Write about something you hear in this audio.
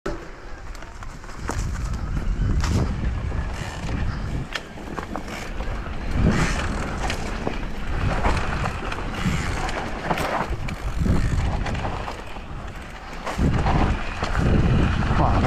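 Bike tyres crunch and rattle over a dirt trail.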